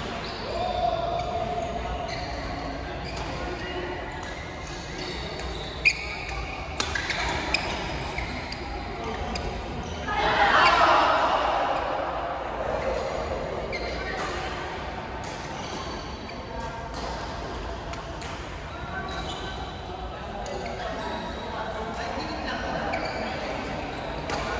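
Shuttlecocks pop off badminton rackets in an echoing indoor hall.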